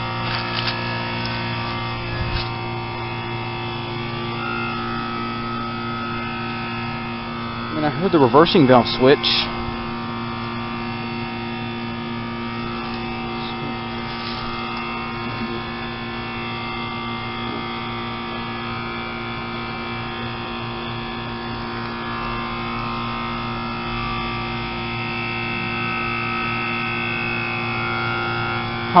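An outdoor air conditioner fan whirs and hums steadily.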